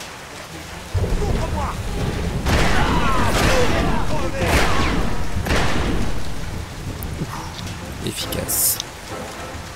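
Gunshots ring out in quick bursts, echoing loudly.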